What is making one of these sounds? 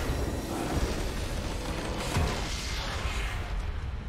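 A triumphant fanfare plays as the match ends.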